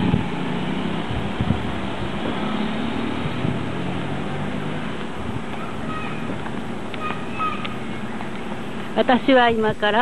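Car engines hum in slow-moving traffic close by.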